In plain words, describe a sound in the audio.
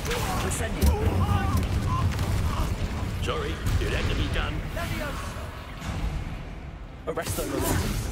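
Flames whoosh and roar.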